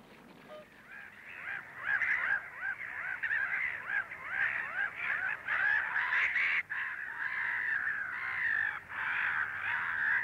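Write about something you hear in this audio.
A flock of black-headed gulls calls and squabbles.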